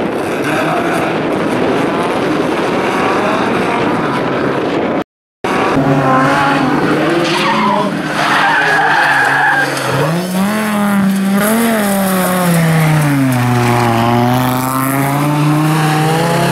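A car engine roars and revs up and down close by.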